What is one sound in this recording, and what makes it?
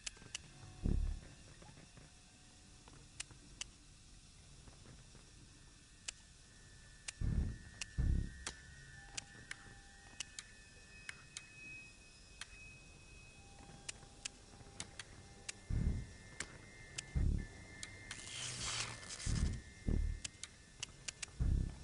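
Short sharp clicks sound again and again as puzzle pieces turn.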